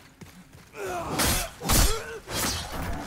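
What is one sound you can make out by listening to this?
A sword swings and strikes with a sharp slash.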